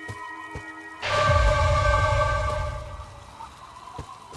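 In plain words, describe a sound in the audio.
A magical shimmering whoosh swells up and then fades.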